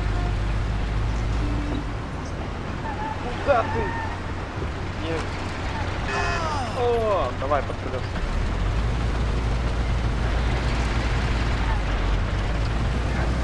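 A car engine hums steadily as a car drives.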